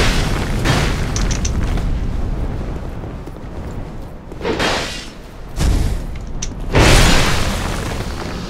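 Metal blades clash and clang.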